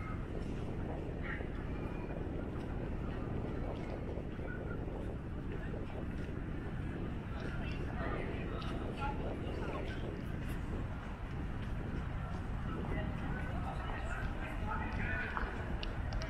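Distant people chatter faintly in an open space.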